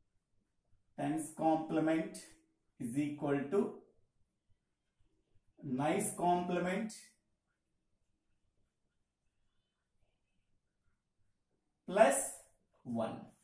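A man speaks calmly and clearly, as if explaining, with pauses.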